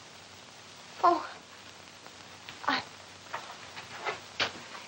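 A young woman calls out in short bursts, heard through an old film soundtrack.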